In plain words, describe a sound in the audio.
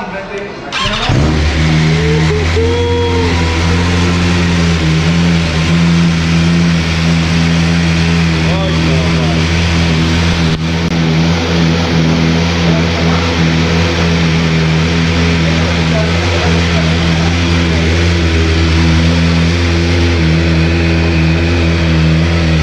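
A motorcycle engine starts and idles steadily and loudly close by.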